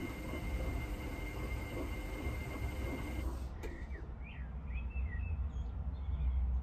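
A washing machine drum turns with a low rumble.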